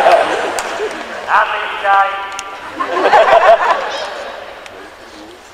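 A large crowd cheers and shouts in an echoing hall.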